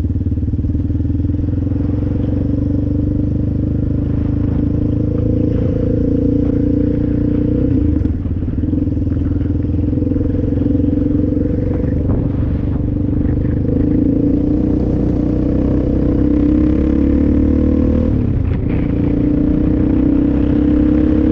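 A motorbike engine drones steadily up close, its pitch shifting as it changes speed.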